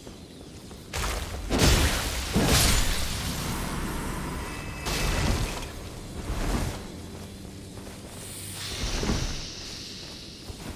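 Swords swing and clash with heavy metallic strikes.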